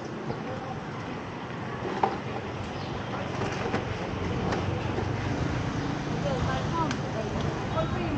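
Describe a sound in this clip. Steady street noise fills a busy outdoor spot.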